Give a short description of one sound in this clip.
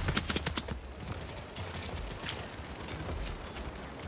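A weapon clicks and clunks as it reloads.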